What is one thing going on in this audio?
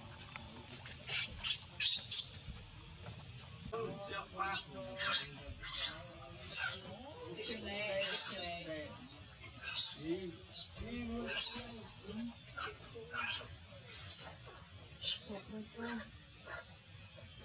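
A baby monkey squeals and cries shrilly close by.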